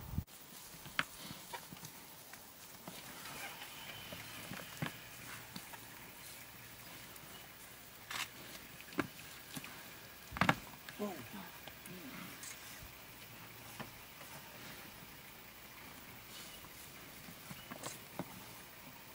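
Cape buffalo bulls clash horns with sharp knocks.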